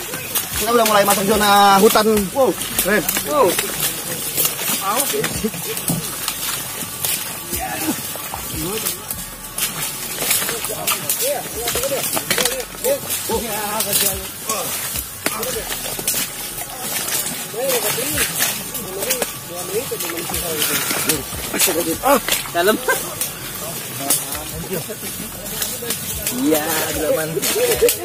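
Leaves and bamboo stalks rustle and snap as people push through undergrowth.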